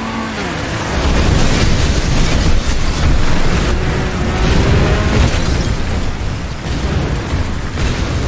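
Cars crash loudly into tyres and each other.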